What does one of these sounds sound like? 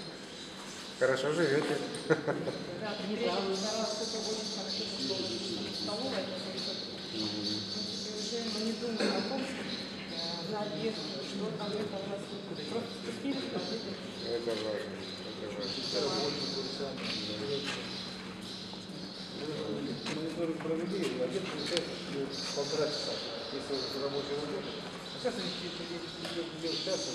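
A middle-aged man speaks calmly and cheerfully into close microphones.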